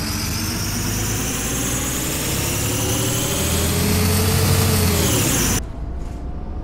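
A bus engine rumbles and whines louder as the bus pulls away.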